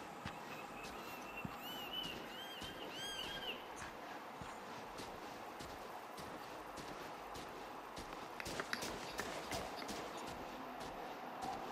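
Footsteps crunch on gravel, quickening into a run.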